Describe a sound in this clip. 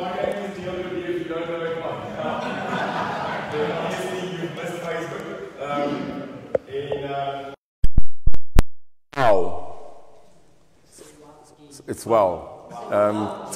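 A middle-aged man speaks with animation to a room.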